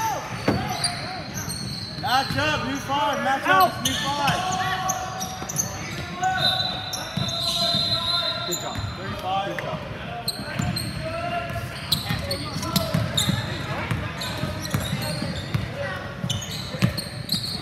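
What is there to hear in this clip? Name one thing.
A crowd of young people chatters in a large echoing gym.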